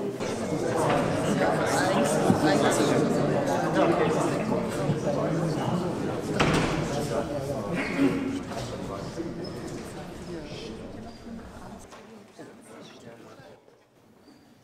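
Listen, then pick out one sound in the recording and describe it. A crowd of men and women chatters loudly in a large echoing hall.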